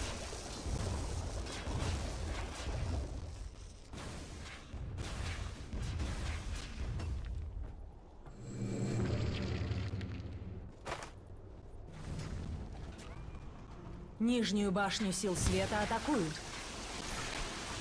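Weapons clash and strike repeatedly in a fantasy battle.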